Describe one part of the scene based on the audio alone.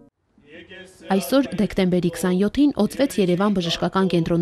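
Men chant a prayer together in low, steady voices.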